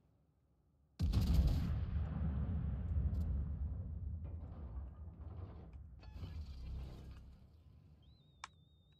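Heavy naval guns fire a loud booming salvo that rumbles and slowly fades.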